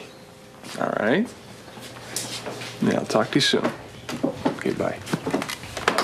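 A man speaks calmly into a telephone.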